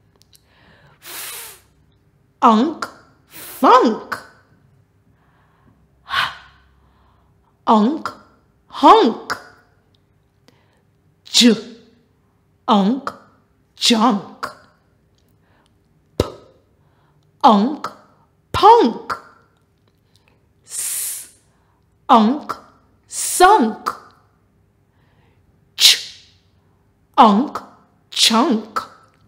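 A woman speaks clearly and with animation into a close microphone, sounding out short words one at a time with pauses between them.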